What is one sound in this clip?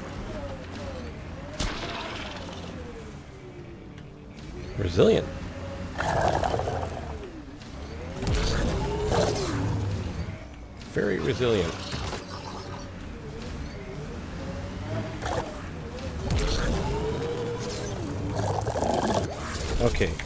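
A vehicle engine hums and revs up and down.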